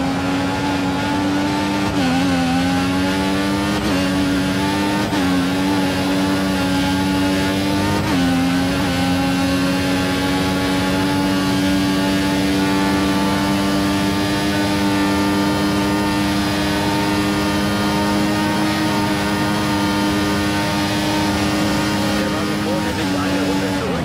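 A racing car engine screams at high revs, rising through the gears.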